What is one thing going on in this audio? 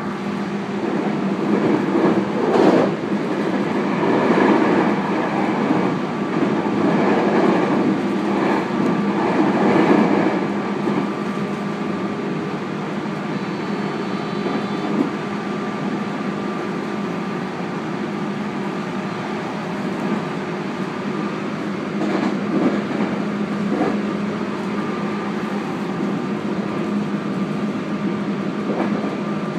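A train hums steadily as it runs along the rails.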